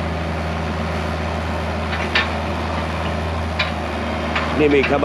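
A small excavator engine rumbles steadily close by.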